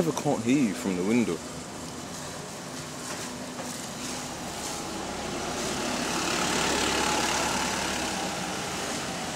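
Traffic hums along a street outdoors.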